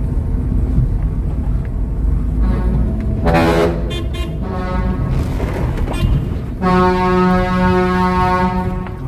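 A vehicle engine rumbles low and steady as it drives.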